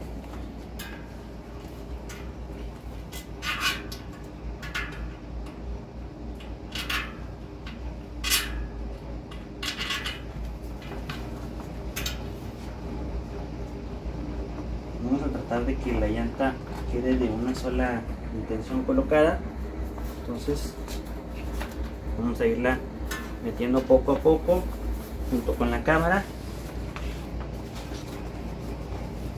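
Rubber squeaks and rubs as hands work an inner tube and tyre onto a bicycle wheel.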